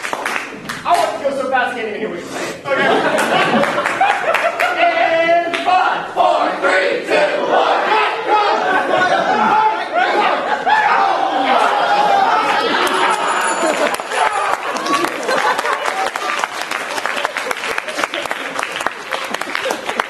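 Several young men shout and talk with animation.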